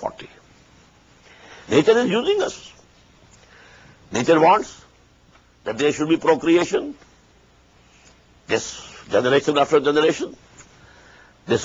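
An elderly man speaks calmly and deliberately into a microphone, with pauses between phrases.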